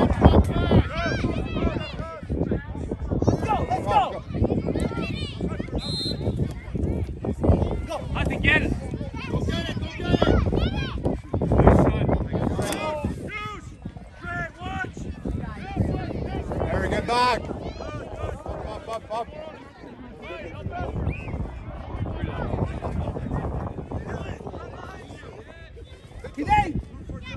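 Adults cheer and shout encouragement.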